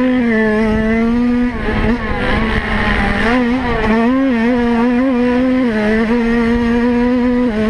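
A dirt bike engine roars loudly up close, its pitch rising and falling as the rider shifts and throttles.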